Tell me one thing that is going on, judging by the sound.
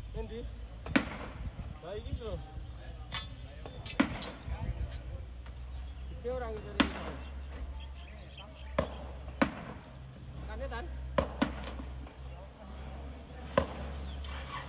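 Stones knock and clatter against each other.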